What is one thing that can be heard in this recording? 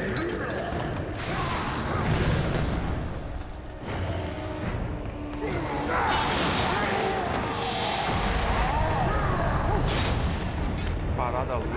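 A monster roars and growls loudly.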